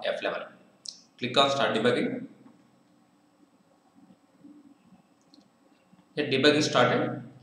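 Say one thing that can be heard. A young man speaks calmly and close to a microphone, explaining.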